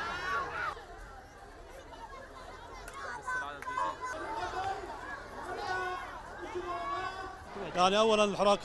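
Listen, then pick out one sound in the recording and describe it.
A crowd of young people chants and shouts outdoors.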